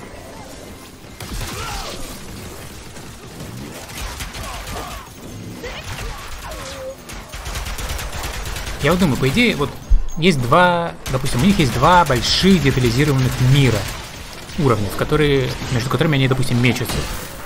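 Gunfire and blasts go off in bursts.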